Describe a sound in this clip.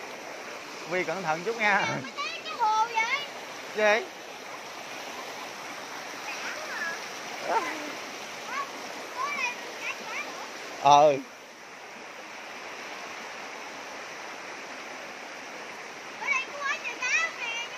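Shallow water trickles over rocks outdoors.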